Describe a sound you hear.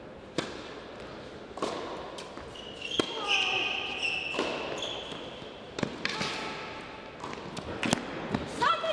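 A tennis ball is struck hard by rackets, back and forth.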